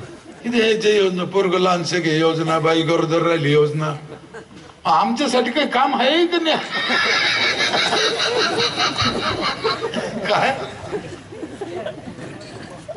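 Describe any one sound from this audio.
A middle-aged man sings loudly and with feeling through a microphone.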